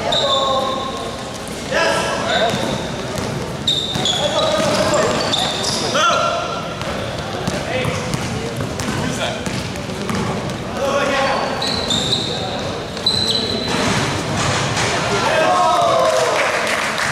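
Basketball shoes squeak sharply on a hard floor.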